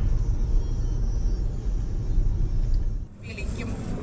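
A car rumbles steadily along a road.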